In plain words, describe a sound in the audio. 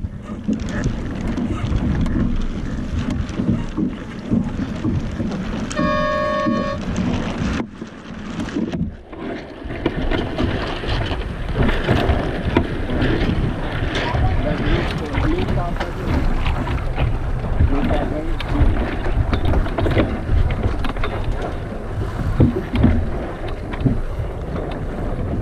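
Water splashes against a sailboat's hull.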